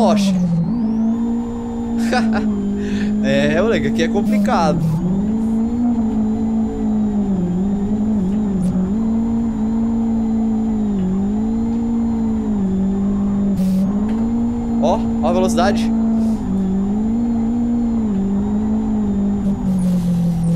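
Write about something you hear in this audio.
A car engine drones steadily, dipping briefly in pitch at each gear change.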